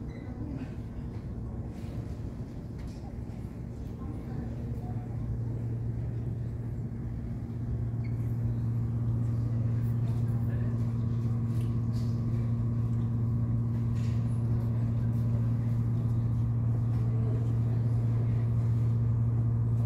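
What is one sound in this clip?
A refrigerated drinks machine hums steadily and grows louder up close.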